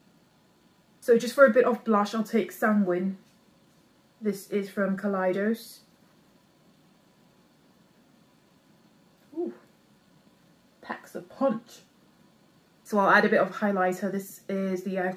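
A young woman speaks calmly and close to a microphone, in short phrases with pauses.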